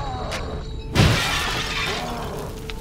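A gunshot rings out loudly with a short echo.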